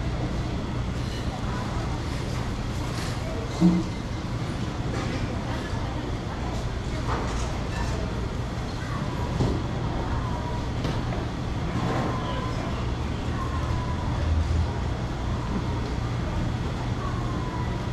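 A crowd murmurs and chatters all around in a busy street.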